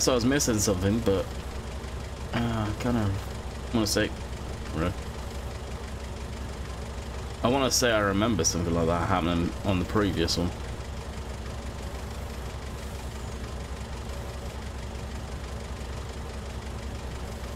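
A forklift engine hums steadily.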